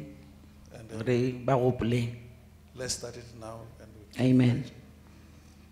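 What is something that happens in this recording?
A woman speaks tearfully into a microphone.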